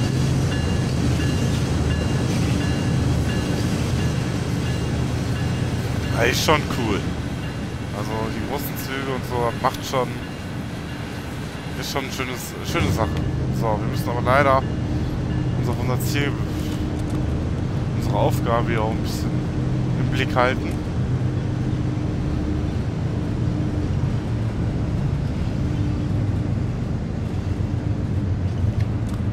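A diesel locomotive engine rumbles steadily.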